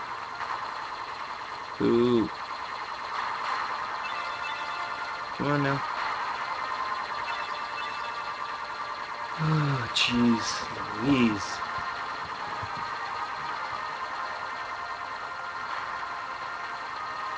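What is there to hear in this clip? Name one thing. Electronic video game music plays steadily.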